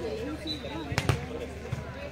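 A hand strikes a volleyball with a sharp slap.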